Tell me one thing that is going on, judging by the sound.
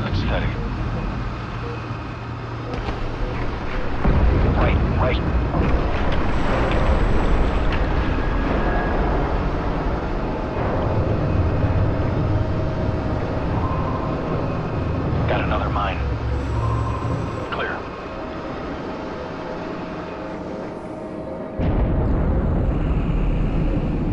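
A vehicle's engine hums low and steadily throughout.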